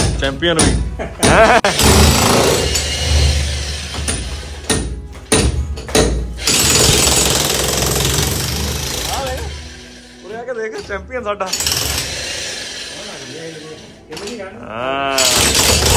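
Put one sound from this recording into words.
An electric demolition hammer chips loudly at a masonry wall.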